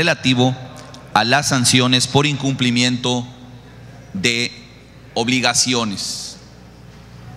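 A man speaks into a microphone in a large room.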